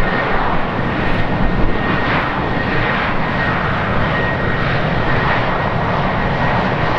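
A jet airliner's engines roar loudly as it lands.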